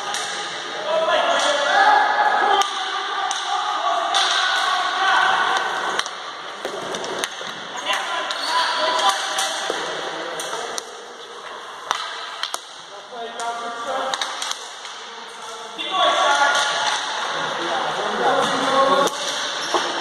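Hockey sticks clack against a ball and each other.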